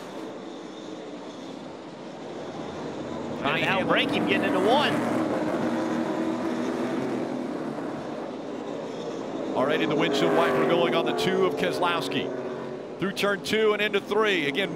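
Race car engines roar loudly as the cars speed past.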